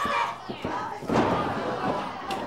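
A wrestler's body slams onto a wrestling ring mat with a heavy thud.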